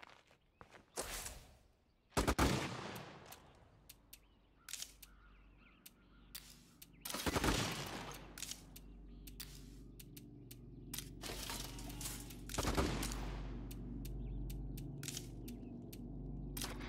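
Short game menu clicks and blips sound at uneven intervals.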